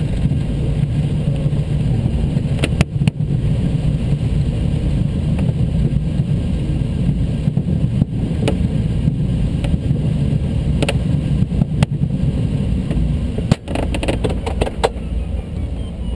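Wind rushes steadily over a glider's canopy.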